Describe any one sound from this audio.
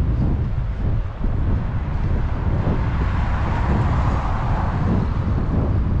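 A car drives past close by and fades away.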